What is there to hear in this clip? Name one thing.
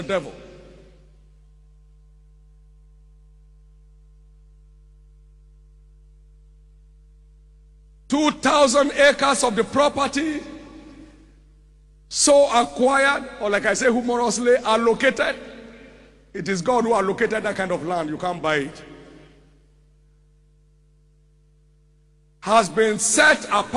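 A man preaches loudly and with passion into a microphone, in bursts with long pauses, echoing in a large hall.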